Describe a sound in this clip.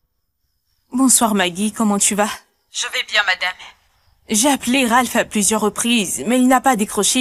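A young woman speaks calmly into a phone up close.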